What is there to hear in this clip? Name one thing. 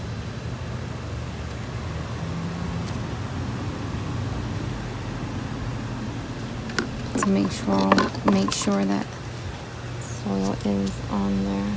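Hands press and rustle loose soil around plants.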